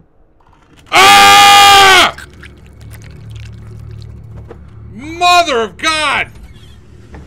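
A young man shouts loudly into a microphone.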